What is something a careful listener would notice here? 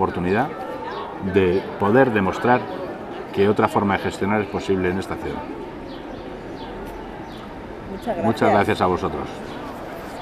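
A middle-aged man speaks calmly and close by, outdoors.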